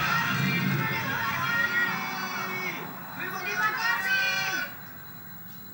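A television plays a loud programme nearby, then suddenly goes quiet.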